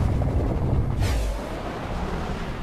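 A loud whoosh rushes up as a figure leaps high into the air.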